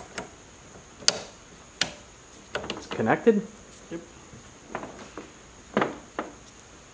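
A hose coupler snaps onto a metal fitting with sharp clicks.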